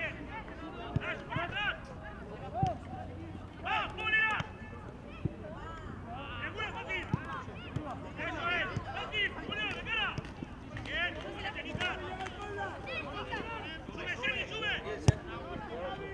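A football is kicked with dull thumps.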